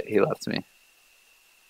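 A young man speaks a few quick words into a microphone.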